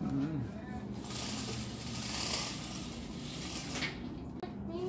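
Window blinds rattle as a cord pulls them up.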